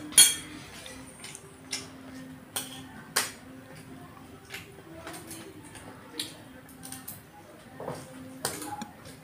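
A spoon clinks and scrapes against a plate.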